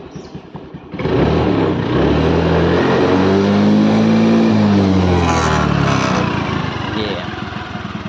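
A scooter engine revs up loudly and then winds back down.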